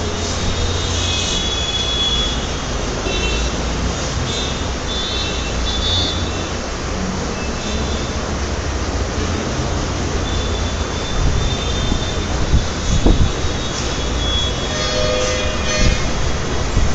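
A marker squeaks on a whiteboard in short strokes.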